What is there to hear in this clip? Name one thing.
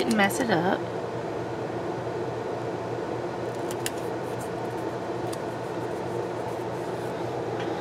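Paper crinkles softly as stickers are peeled and pressed down.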